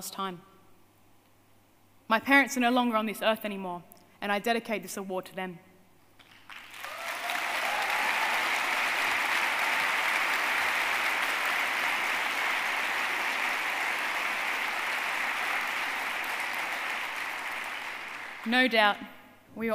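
A woman speaks with emotion into a microphone, heard over loudspeakers in a large hall.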